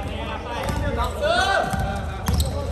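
Basketball shoes squeak sharply on a hard court.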